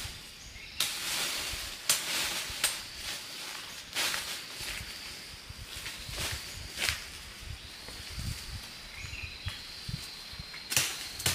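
Leafy branches rustle and shake as they are pulled.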